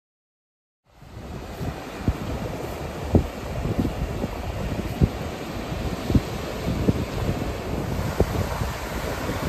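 Surf breaks and rushes up a sandy beach.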